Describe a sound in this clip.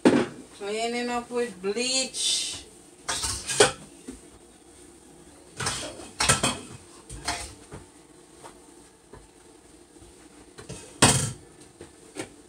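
Dishes clatter in a sink.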